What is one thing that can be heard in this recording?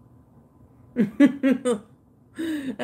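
A woman laughs close to a microphone.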